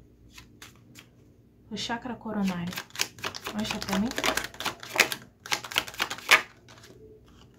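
Playing cards riffle and flutter as they are shuffled by hand.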